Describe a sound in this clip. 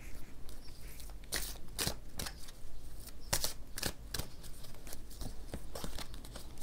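Cards are shuffled, flicking and slapping together in quick bursts.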